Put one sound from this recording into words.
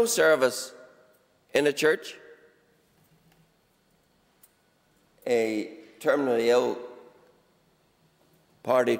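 An older man speaks in bursts through a microphone in a large, echoing hall.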